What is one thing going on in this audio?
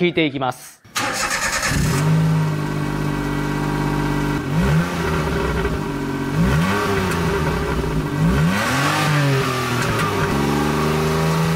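A small car engine idles steadily and is revved in short bursts.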